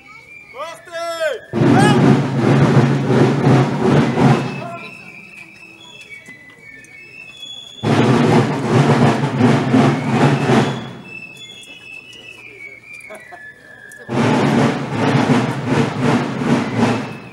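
Many feet march and shuffle on a paved street.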